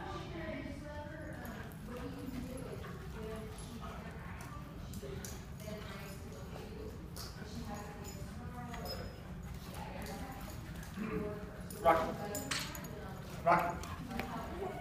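Dogs scamper and scuffle on a hard floor.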